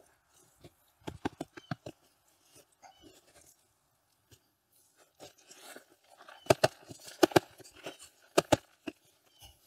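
A plastic plant pot is tapped and knocked on the ground.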